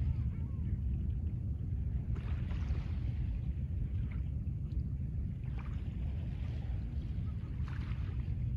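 Small waves lap gently on a pebble shore.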